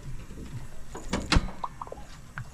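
A car hood clicks and creaks open.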